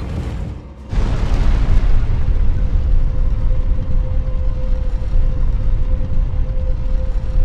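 A heavy stone lift rumbles loudly as it descends.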